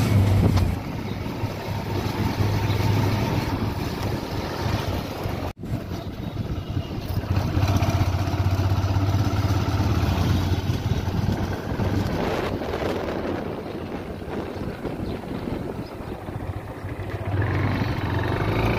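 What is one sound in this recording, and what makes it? Wind rushes past the microphone outdoors.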